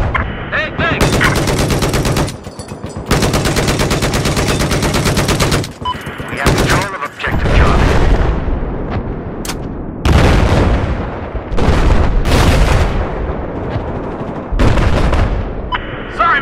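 A heavy machine gun fires in rapid, loud bursts.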